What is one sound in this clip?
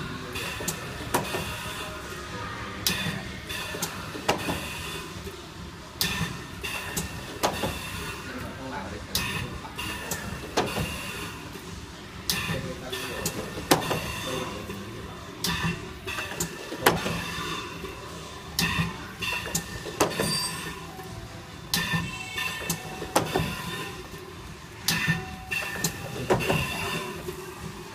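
A machine clacks and thumps in a steady repeating rhythm.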